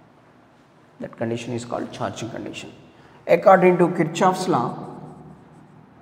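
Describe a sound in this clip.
A young man speaks with emphasis, as if explaining a lesson.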